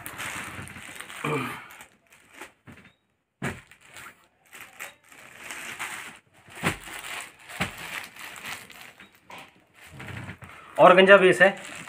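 Fabric rustles and crinkles as folded garments are moved and laid down.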